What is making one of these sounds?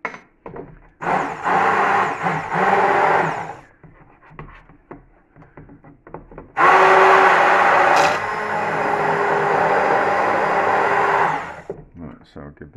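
A hand blender whirs loudly in a pot of liquid.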